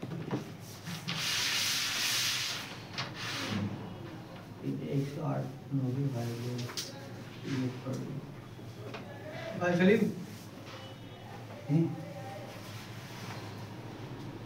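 Hands rub and slide across a smooth board with a soft swishing.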